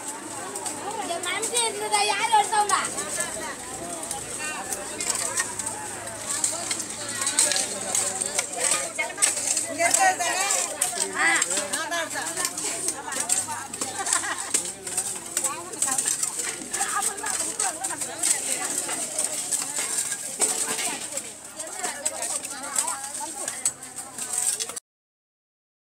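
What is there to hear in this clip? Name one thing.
A crowd of women chatter loudly nearby, outdoors.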